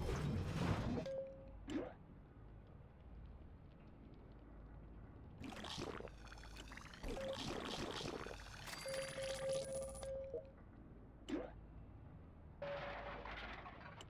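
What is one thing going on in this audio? Short electronic menu beeps sound now and then.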